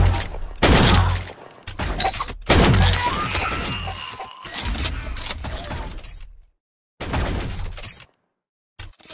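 A shotgun fires loud booming blasts, one after another.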